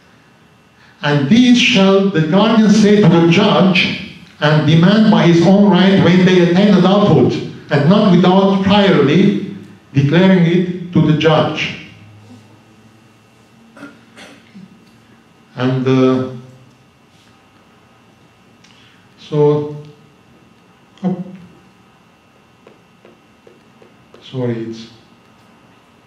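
A middle-aged man speaks calmly into a microphone, heard through a loudspeaker in a large room.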